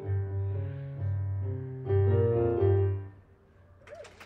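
An electric piano plays a chord melody.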